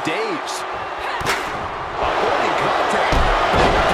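A kick lands with a sharp smack.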